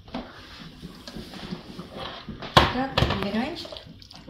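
A spoon scrapes and stirs food in a frying pan.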